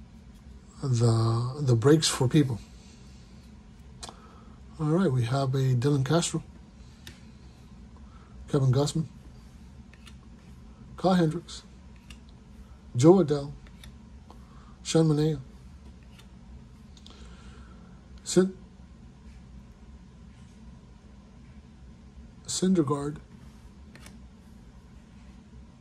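Trading cards rustle and slide softly as they are flipped through.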